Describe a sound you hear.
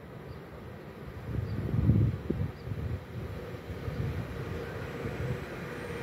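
A train approaches along the tracks, rumbling louder as it nears.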